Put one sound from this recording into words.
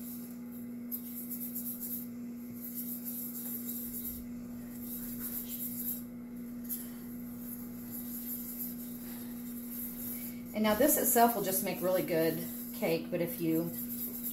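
A whisk scrapes and taps against a pan.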